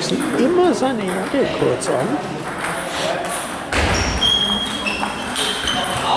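A table tennis ball clicks back and forth off paddles and a table in an echoing hall.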